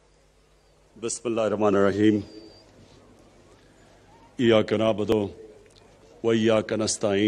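A man speaks firmly into a microphone, in short phrases with pauses, heard through a loudspeaker outdoors.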